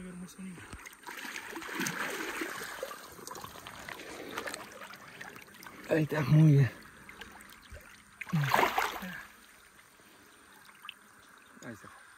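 Water splashes and swirls.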